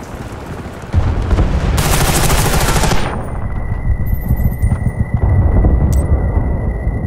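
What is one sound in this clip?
A rifle fires rapid bursts of shots, close and loud.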